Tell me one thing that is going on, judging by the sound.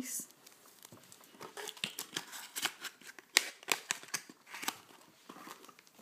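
Paper crinkles and rustles close by.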